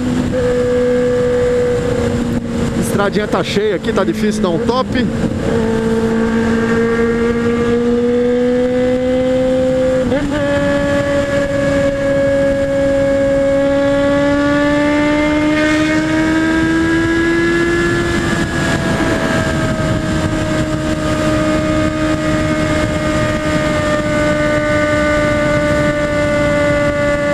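Wind rushes past a rider at high speed.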